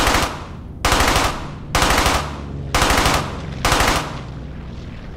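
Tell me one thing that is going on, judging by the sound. A submachine gun fires several short bursts.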